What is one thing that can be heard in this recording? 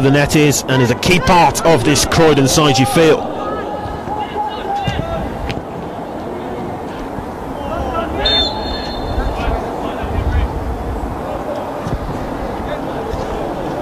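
Footballers shout to each other across an open pitch.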